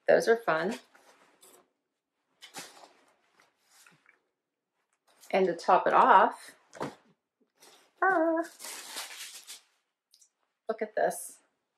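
Clothing rustles as a woman handles it.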